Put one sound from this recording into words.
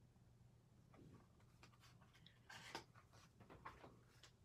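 Stiff paper cards rustle and tap softly as they are handled.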